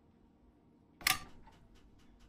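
A switch clicks sharply in a train cab.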